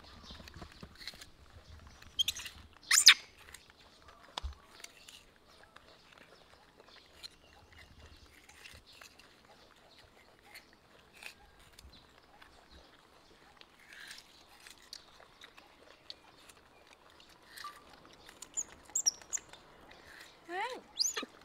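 Young monkeys chew and munch on food up close.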